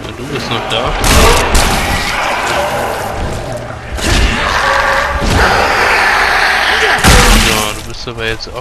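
A blade hacks into flesh with heavy, wet thuds.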